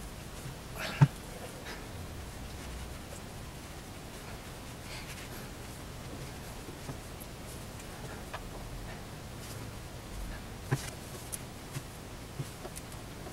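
Small knocks and taps sound now and then on a wooden base.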